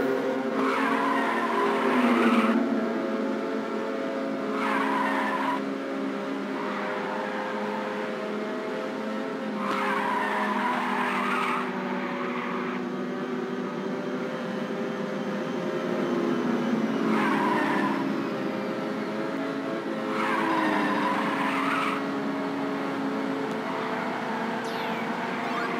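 Racing car engines roar steadily at high revs.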